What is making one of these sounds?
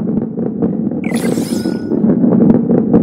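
A bright chime rings out.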